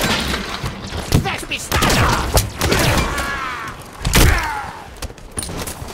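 Energy blasts explode with sharp bangs.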